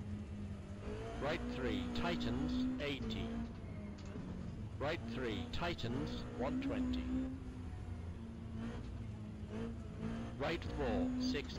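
Car tyres screech on the road.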